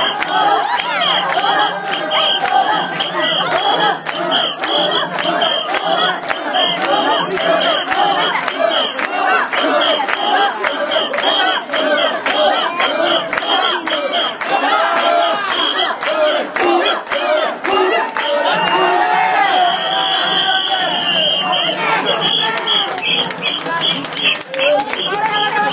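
A large crowd of men and women shout and chant loudly close by.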